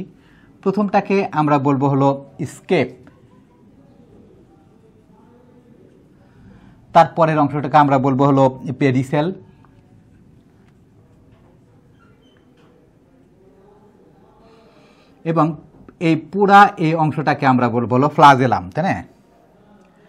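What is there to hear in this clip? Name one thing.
A middle-aged man speaks calmly in short bursts, as if explaining.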